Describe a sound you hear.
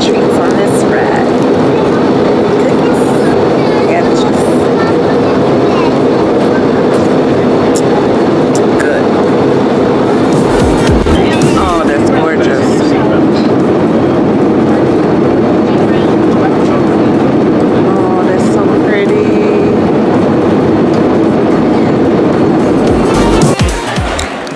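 A steady jet engine drone fills an aircraft cabin.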